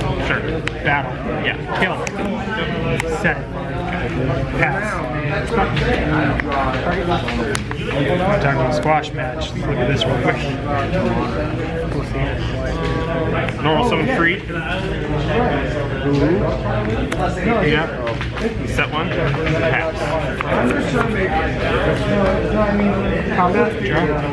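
Playing cards are slid and tapped down on a soft mat.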